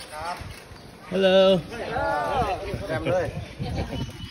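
A man calls out outdoors.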